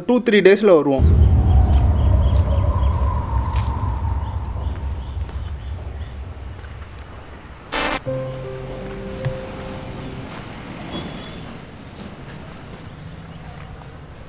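Wind rumbles outdoors and slowly fades.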